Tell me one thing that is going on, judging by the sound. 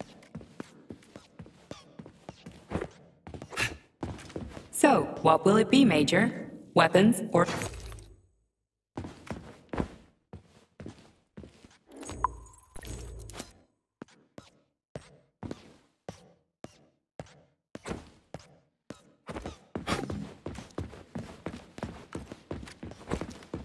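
Footsteps click steadily on a hard floor.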